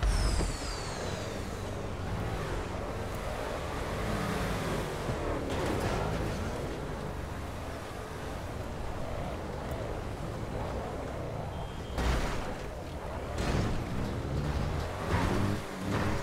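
A car engine roars steadily.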